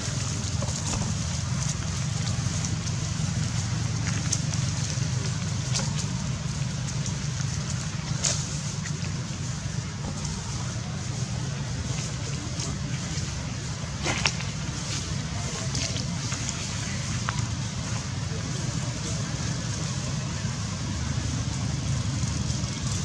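Dry leaves rustle and crackle under a monkey's feet.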